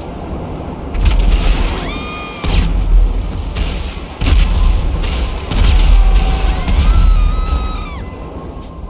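Explosions boom as vehicles blow up.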